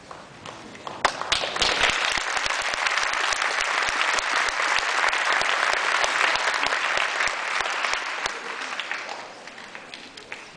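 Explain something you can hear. An audience applauds loudly in a hall.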